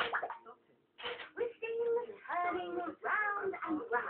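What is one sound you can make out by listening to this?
A toy plays electronic tunes and beeps.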